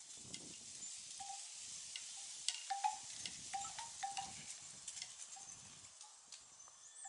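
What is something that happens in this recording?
A strutting turkey makes a deep, low drumming hum.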